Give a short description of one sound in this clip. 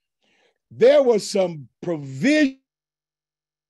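A middle-aged man speaks with animation, close to a microphone, as if on an online call.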